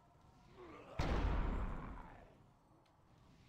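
A loud magical blast booms and fades.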